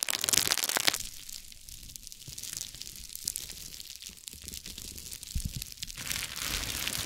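A wooden stick rolls softly over bubble wrap.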